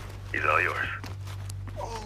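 A man speaks in a low, muffled voice close by.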